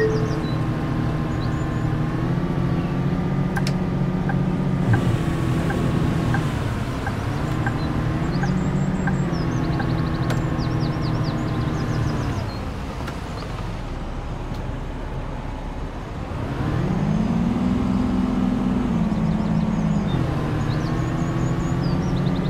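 A bus engine hums steadily, its pitch rising and falling as it speeds up and slows down.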